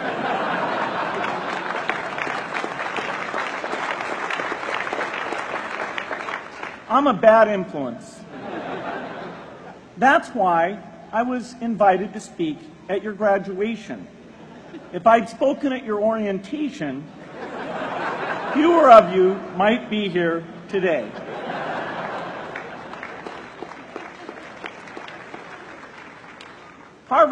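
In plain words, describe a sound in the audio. A crowd laughs loudly.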